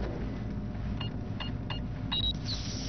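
Electronic keypad buttons beep as they are pressed.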